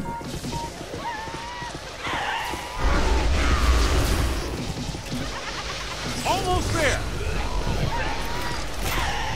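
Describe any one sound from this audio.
Energy beams crackle and buzz as they fire.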